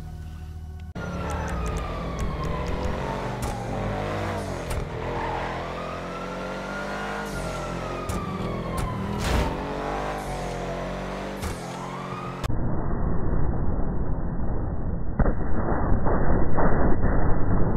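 A car engine roars as the car drives along a road.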